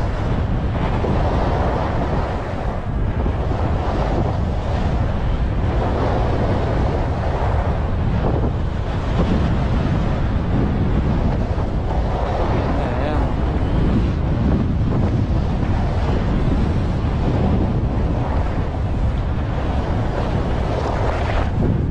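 Wind rushes loudly past, outdoors.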